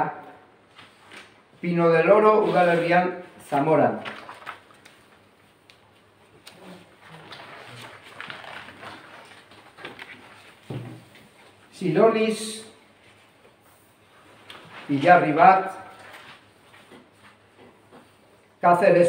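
A middle-aged man speaks calmly in short bursts.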